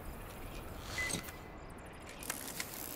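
A metal gadget clicks and clatters as it is lifted.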